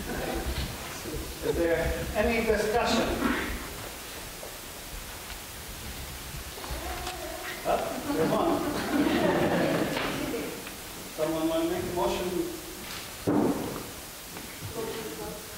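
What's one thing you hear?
A man speaks through a microphone in an echoing hall.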